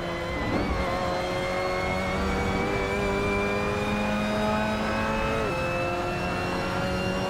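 A racing car engine roars, climbing steadily in pitch.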